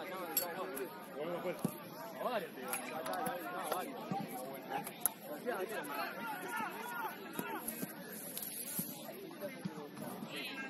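Young women chatter and call out to each other outdoors at a distance.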